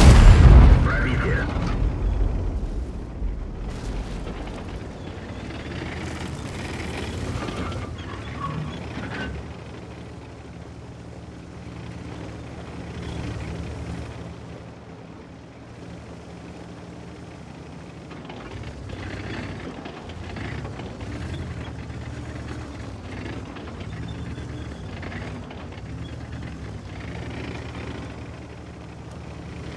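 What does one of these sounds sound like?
A heavy tank engine rumbles low and steadily as the tank drives.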